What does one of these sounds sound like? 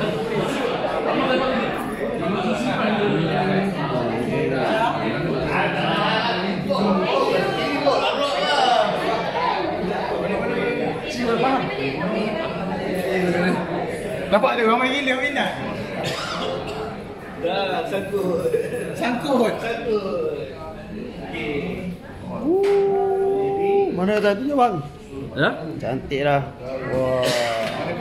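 A crowd of men chatter nearby in a room.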